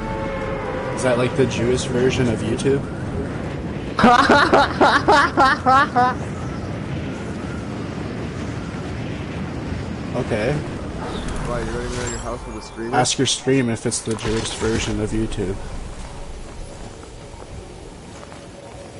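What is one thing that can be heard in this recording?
Wind rushes steadily past a gliding game character.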